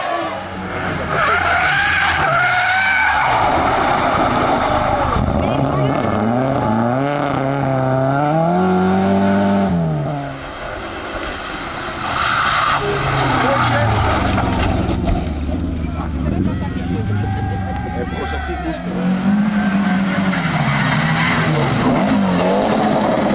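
Rally car engines roar and rev hard as they speed past.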